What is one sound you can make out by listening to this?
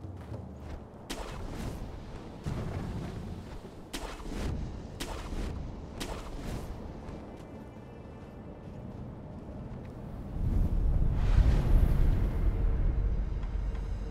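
Wind gusts outdoors.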